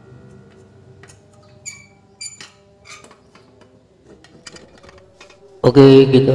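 Metal parts click and clink lightly.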